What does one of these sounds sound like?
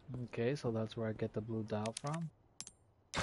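A young man speaks animatedly into a headset microphone.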